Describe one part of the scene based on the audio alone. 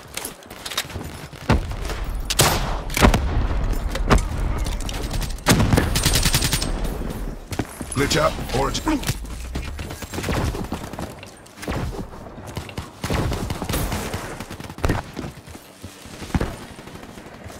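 Gunshots fire in sharp bursts.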